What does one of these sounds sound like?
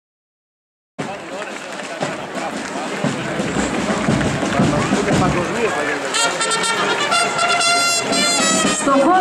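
A crowd murmurs outdoors along the street.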